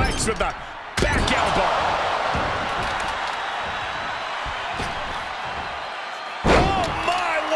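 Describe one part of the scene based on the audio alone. A body slams down hard onto a wrestling mat with a thud.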